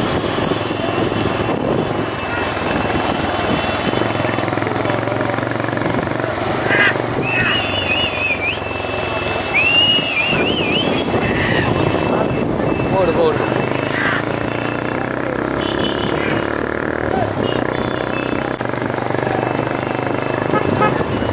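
Motorcycle engines drone behind the racing carts.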